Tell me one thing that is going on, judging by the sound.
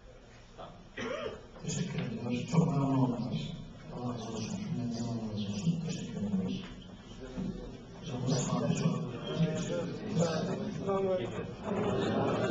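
A middle-aged man speaks into a microphone over a loudspeaker in an echoing hall.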